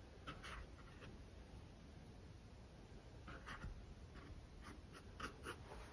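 A paintbrush dabs softly on canvas.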